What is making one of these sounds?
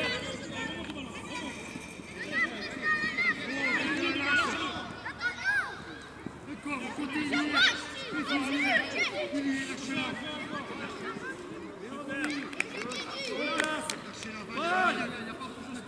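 Children shout and call to each other outdoors.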